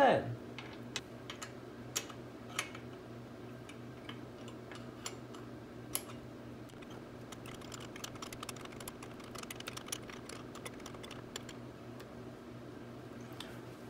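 A metal tool clicks and taps against metal parts.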